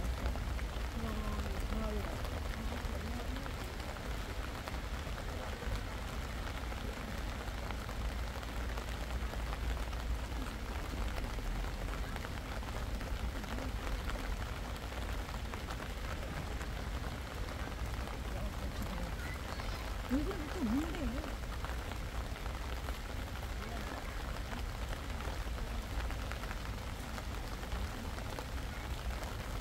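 Wind blows and rustles through tall grass outdoors.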